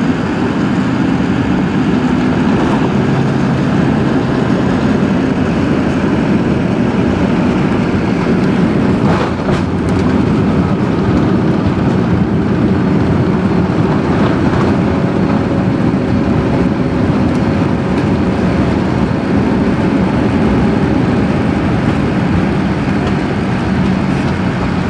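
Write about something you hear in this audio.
A jet engine roars loudly and steadily from close by.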